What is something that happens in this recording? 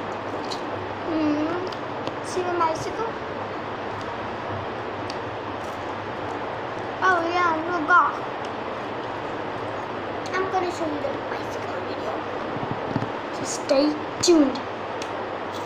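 A young girl speaks close by in short bursts, with animation.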